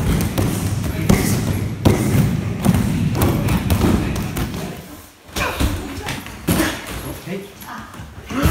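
Feet stamp and scuffle on a mat.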